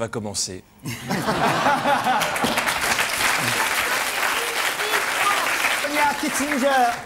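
A studio audience applauds.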